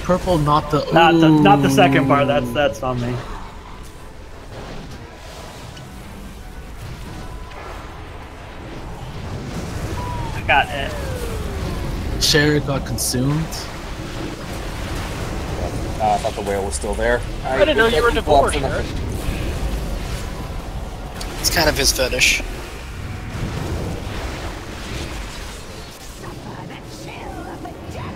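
Magic spells whoosh, crackle and boom in a fantasy battle.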